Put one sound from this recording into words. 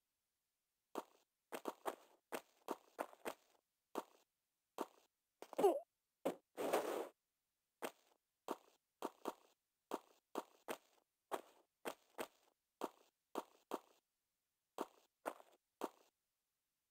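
Footsteps tap quickly on stone.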